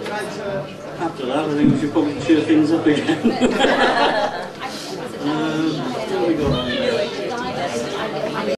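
An elderly man speaks cheerfully into a microphone, heard over loudspeakers.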